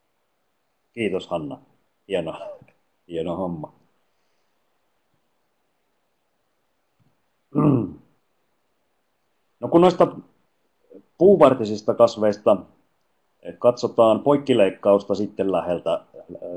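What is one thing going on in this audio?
A middle-aged man speaks calmly into a headset microphone over an online call, in short phrases with pauses.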